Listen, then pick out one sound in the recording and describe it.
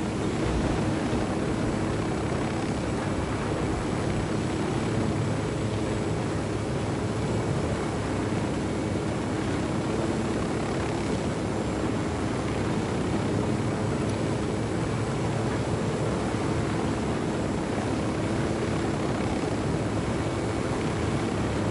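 A helicopter's rotor chops and its engine whines steadily.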